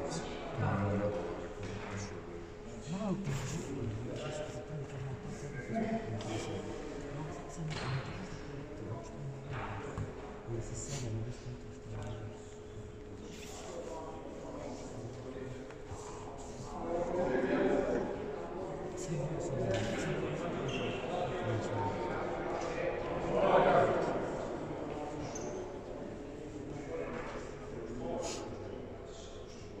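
Two men talk quietly nearby in a large echoing hall.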